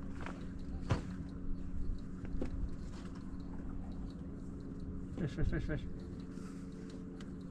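Water laps against a boat's hull.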